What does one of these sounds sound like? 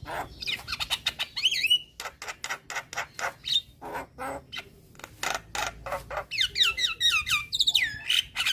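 A bird sings loudly close by with rapid chirps, harsh chatters and whistled trills.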